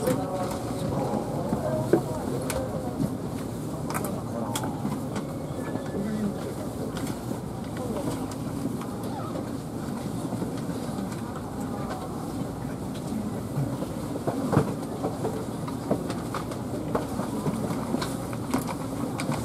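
A train carriage hums steadily while standing still.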